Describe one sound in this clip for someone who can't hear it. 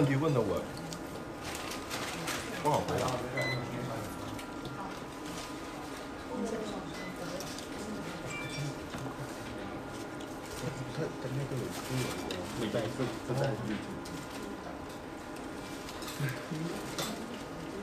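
A young man slurps and chews food.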